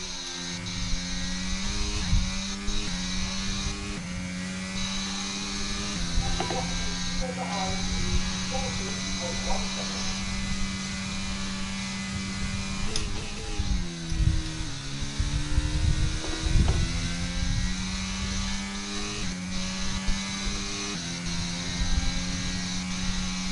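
A racing car engine whines at high revs, shifting up through the gears.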